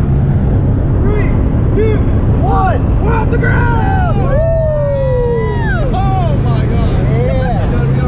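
A young woman whoops and shouts with excitement close by.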